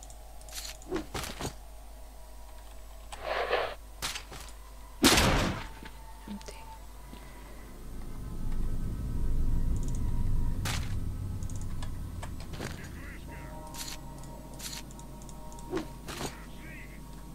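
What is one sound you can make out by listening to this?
Short clicks and item rustles sound from a game menu.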